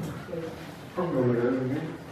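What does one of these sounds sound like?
A man chants in a low voice nearby.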